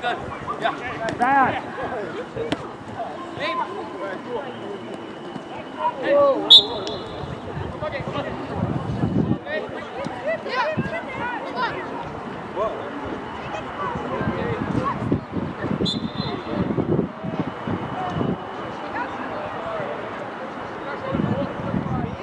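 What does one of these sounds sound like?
Young men shout to each other across an open outdoor pitch.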